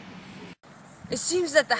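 A teenage boy speaks close by.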